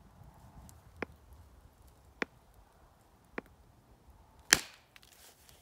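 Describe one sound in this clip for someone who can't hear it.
Stone flakes snap off under an antler tool with sharp clicks.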